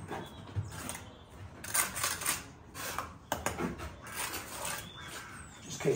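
Bricks knock and clatter as they are set in place.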